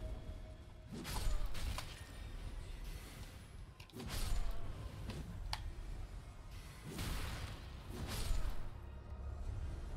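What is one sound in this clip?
Magic beams whoosh and crackle in bursts.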